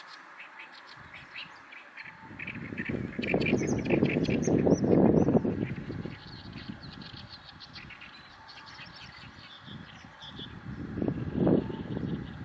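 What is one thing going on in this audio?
A small bird sings a harsh, chattering song close by.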